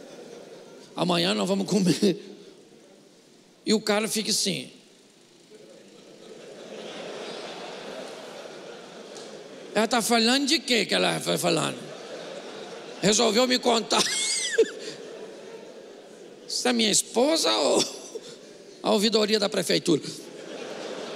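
An older man speaks with animation into a microphone, in short bursts with pauses, in a large echoing hall.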